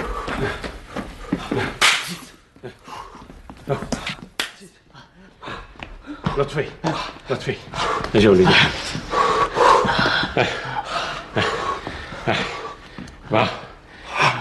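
Several men sing loudly together.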